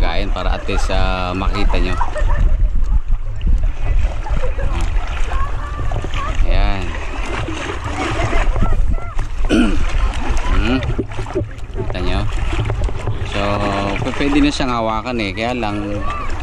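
Water splashes and laps against the side of a small boat.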